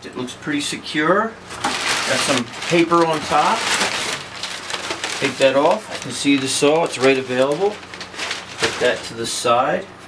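Crumpled packing paper rustles loudly.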